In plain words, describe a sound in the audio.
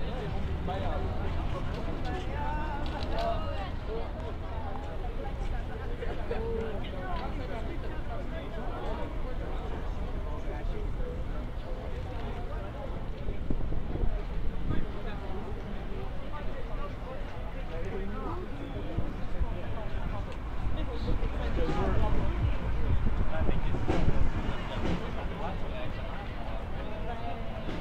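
A crowd talks and shouts outdoors nearby.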